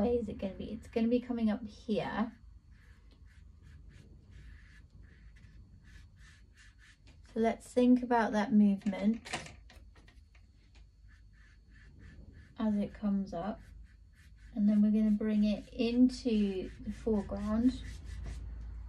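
A woman speaks calmly and close by, as if explaining.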